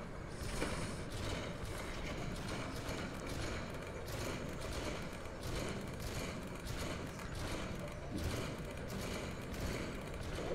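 Explosions boom.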